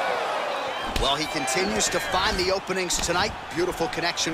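A fist lands on a body with a thud.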